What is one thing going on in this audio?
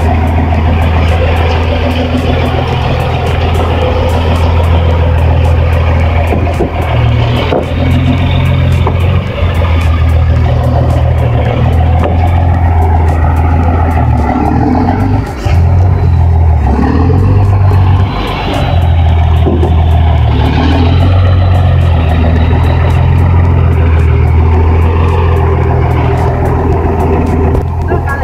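A heavy truck engine rumbles steadily close by.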